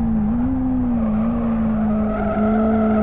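Tyres squeal through a corner.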